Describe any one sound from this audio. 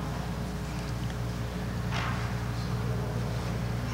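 A man speaks quietly into a microphone in a large hall.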